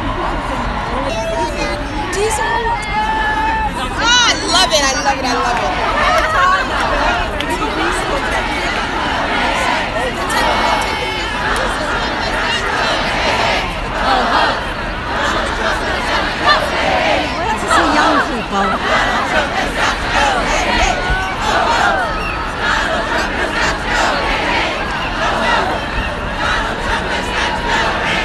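A large crowd of men and women chatters and chants outdoors.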